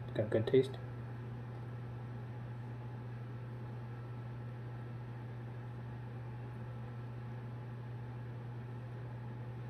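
A ceiling fan hums steadily.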